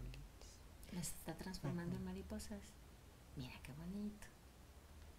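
A middle-aged woman speaks softly close by.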